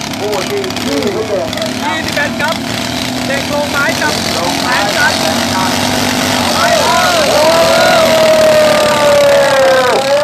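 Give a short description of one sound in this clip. Small engines roar and whine as racing machines speed by outdoors.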